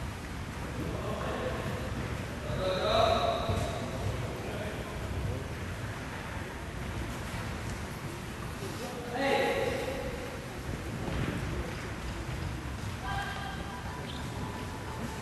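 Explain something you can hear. People talk briefly in a large echoing hall.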